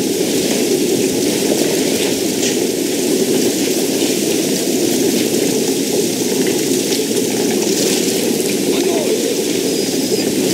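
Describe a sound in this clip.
Water pours down in a steady stream.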